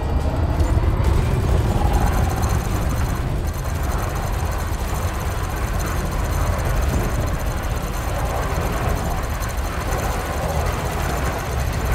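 Cannons fire in rapid bursts.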